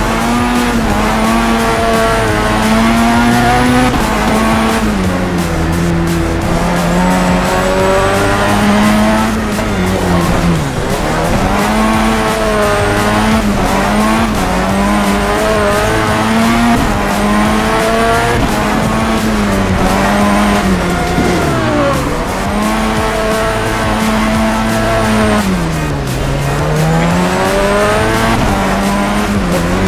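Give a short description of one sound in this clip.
A race car engine revs hard, rising and falling as the car shifts gears.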